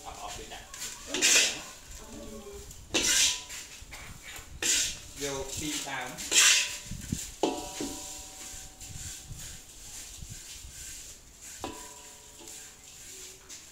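A wooden spatula scrapes and rustles through dry, crunchy food in a metal wok.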